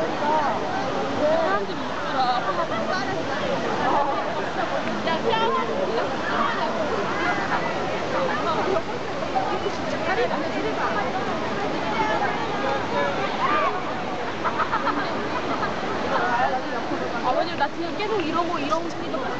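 Many young people chatter and call out close by.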